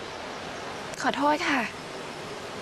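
A young woman answers softly and apologetically.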